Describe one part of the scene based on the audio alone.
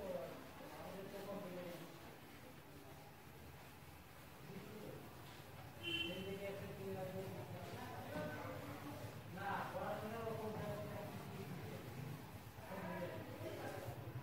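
A cloth wipes across a whiteboard.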